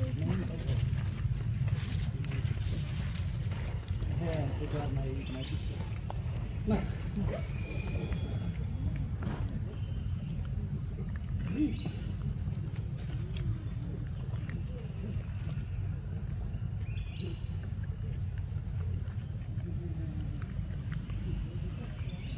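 A monkey chews and munches on fruit close by.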